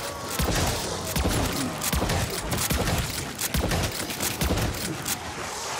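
A rifle fires in rapid, booming shots.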